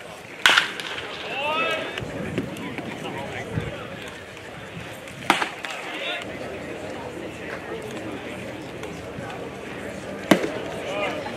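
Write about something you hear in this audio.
A baseball smacks into a catcher's mitt with a sharp pop.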